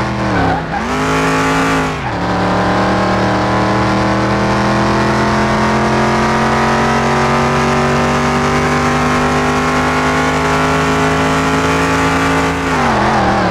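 A car engine roars and revs up through the gears, with drops in pitch at each gear change.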